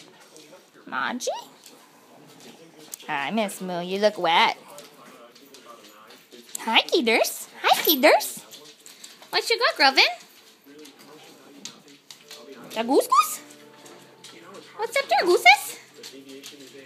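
A dog whines in high, wavering cries, close by.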